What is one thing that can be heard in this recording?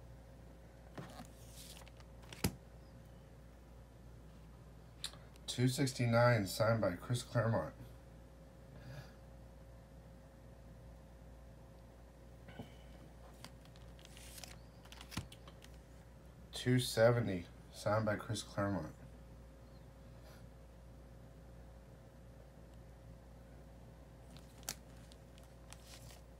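A fingertip taps and rubs against a stiff plastic sleeve.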